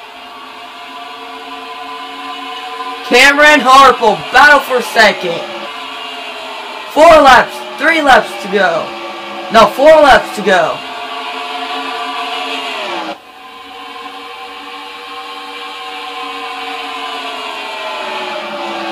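Race car engines drone steadily at high speed.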